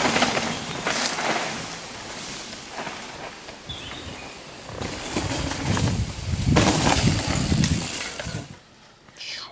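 Bicycle tyres crunch and skid over a dirt trail.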